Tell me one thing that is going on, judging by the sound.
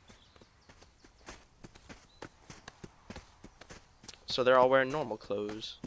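Footsteps tread along a dirt path.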